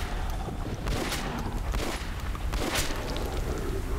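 Gunshots fire in quick, sharp bursts.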